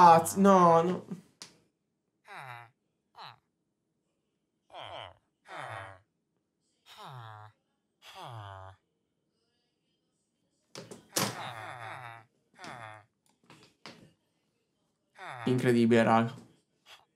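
A young man talks with animation into a close microphone, in short bursts with pauses.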